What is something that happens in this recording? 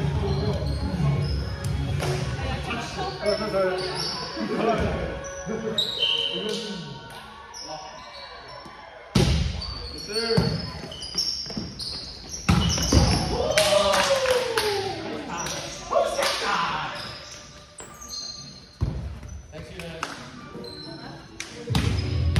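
Young men and women call out and talk across the court.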